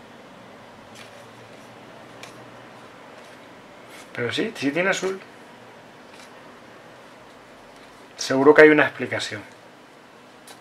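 Playing cards shuffle and slide against each other.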